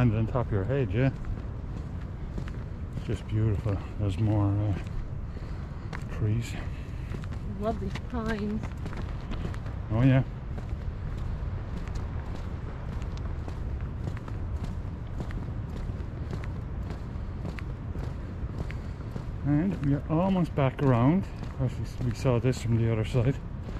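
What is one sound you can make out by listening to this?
Footsteps crunch steadily on a paved path.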